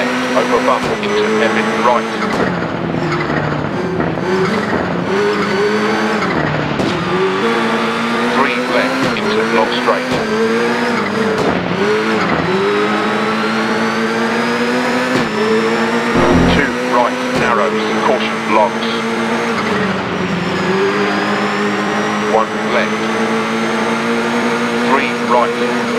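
A car engine revs up and down, changing pitch with speed.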